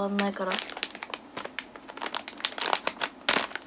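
A plastic packet crinkles close by.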